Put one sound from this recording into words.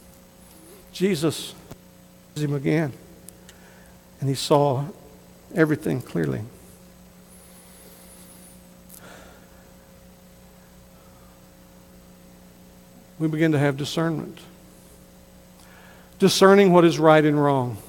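A middle-aged man speaks through a microphone in bursts, with long pauses.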